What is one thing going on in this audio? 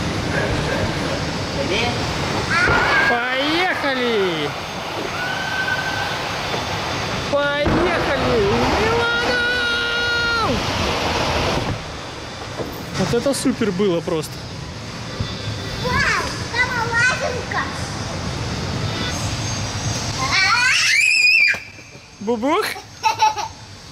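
A young girl talks excitedly nearby.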